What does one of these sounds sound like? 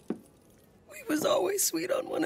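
A young woman speaks tearfully close by.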